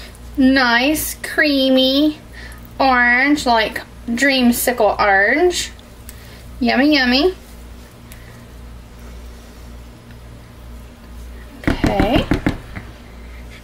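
A spatula stirs and scrapes thick liquid in a plastic tub.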